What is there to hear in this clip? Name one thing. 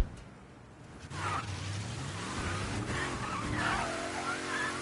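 A car engine starts and revs up.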